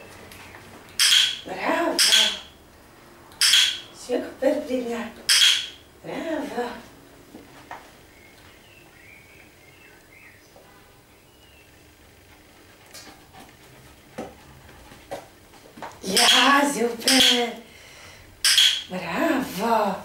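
A woman speaks close by in short, upbeat bursts.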